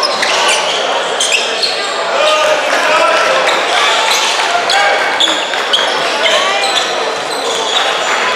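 Young men shout and call out in a large echoing hall.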